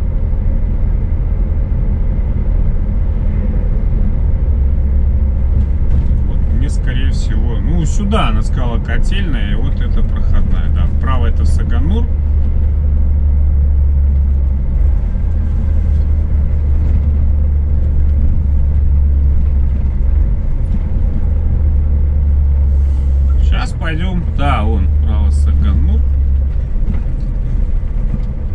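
A vehicle engine hums low and steady while driving.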